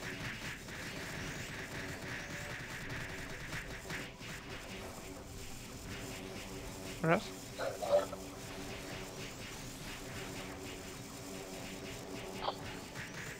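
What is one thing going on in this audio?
Game music plays steadily.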